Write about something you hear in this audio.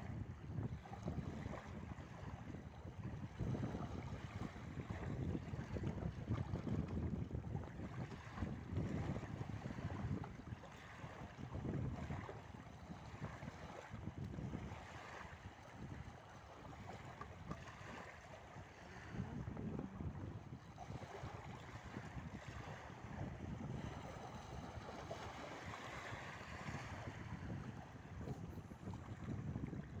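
Wind blows hard against the microphone outdoors.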